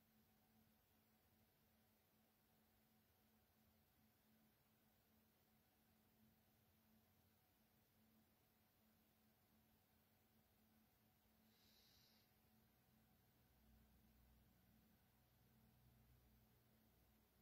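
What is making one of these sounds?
A man breathes slowly and deeply.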